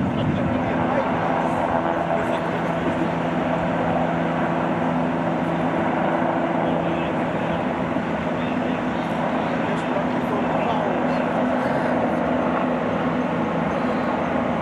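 A crane engine hums steadily throughout.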